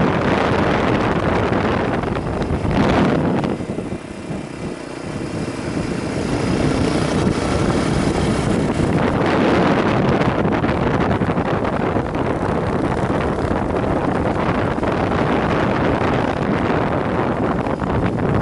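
A motorcycle engine hums steadily, rising and falling in pitch.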